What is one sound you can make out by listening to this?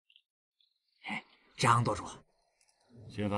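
A man speaks quietly and slowly nearby.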